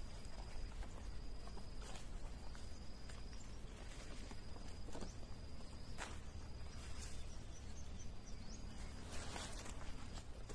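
Large leaves rustle and crackle as they are handled.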